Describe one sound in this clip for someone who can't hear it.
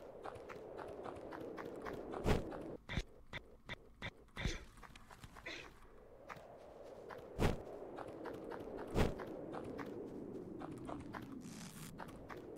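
Quick retro game footsteps patter along.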